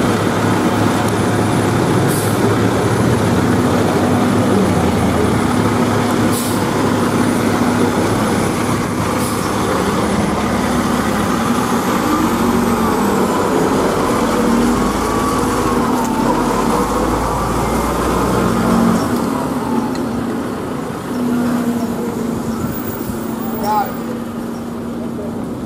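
A diesel fire truck engine rumbles as the truck pulls out and drives off.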